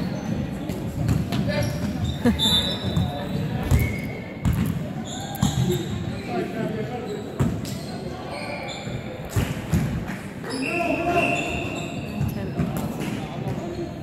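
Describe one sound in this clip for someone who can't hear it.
Players call out to each other across the court.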